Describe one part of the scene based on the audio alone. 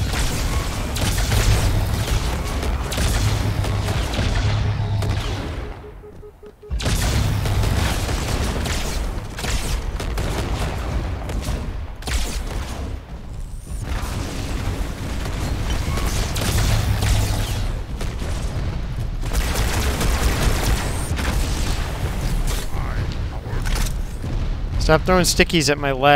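Energy guns fire in rapid bursts.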